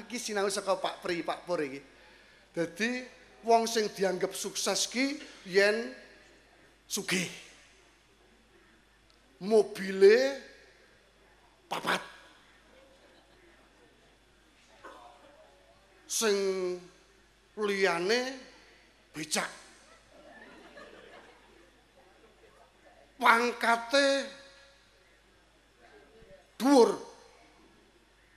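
A man speaks calmly through a microphone in a reverberant hall, pausing between phrases.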